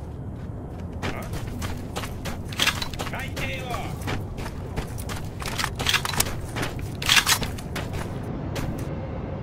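Footsteps crunch steadily on hard ground.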